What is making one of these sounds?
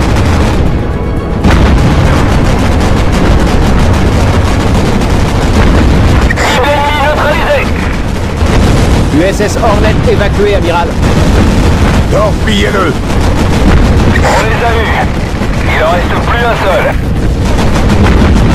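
Anti-aircraft guns fire in rapid bursts.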